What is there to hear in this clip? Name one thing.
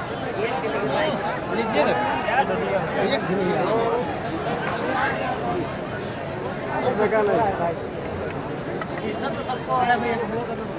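A large outdoor crowd cheers and shouts throughout.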